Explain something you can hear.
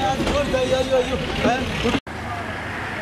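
A crowd of men talks in the background outdoors.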